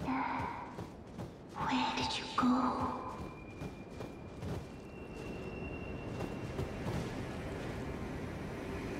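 Heavy footsteps crunch over stone and dry grass.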